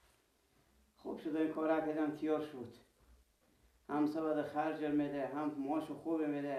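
A middle-aged man speaks calmly close by.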